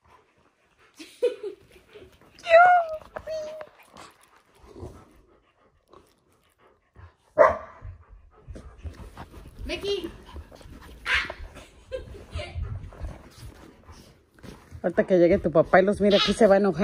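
A young girl laughs and squeals excitedly close by.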